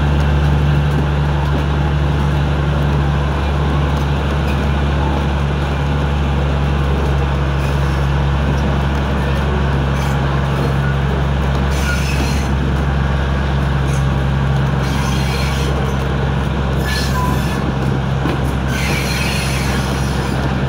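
A train carriage rumbles steadily along the rails.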